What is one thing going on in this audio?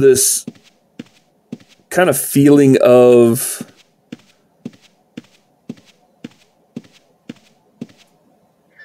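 Footsteps tread steadily along a path.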